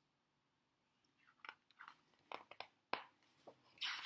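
Book pages rustle as a page turns.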